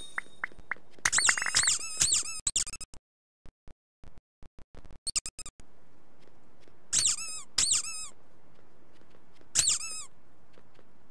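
Bright game chimes ring out in short bursts.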